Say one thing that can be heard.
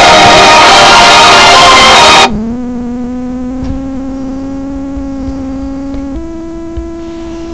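Music plays from a television.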